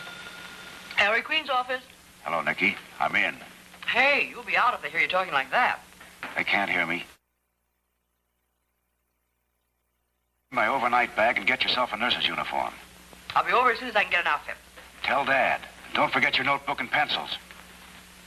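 A young woman speaks briskly into a telephone.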